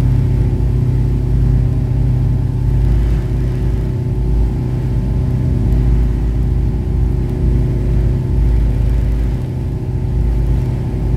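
A boat engine drones steadily and deeply close by.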